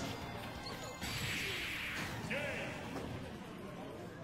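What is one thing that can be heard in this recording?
A loud video game whoosh and blast sound.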